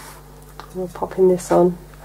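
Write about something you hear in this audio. A paintbrush dabs into a paint palette.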